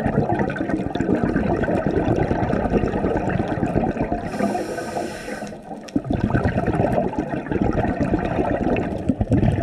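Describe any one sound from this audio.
Bubbles rumble and gurgle loudly underwater.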